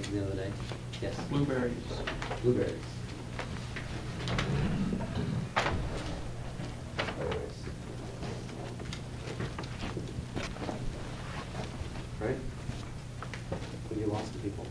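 A man speaks with animation to a room, close by.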